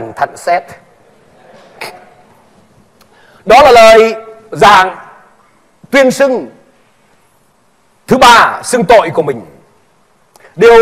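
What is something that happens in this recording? A man preaches loudly into a microphone, heard over loudspeakers in a large echoing hall.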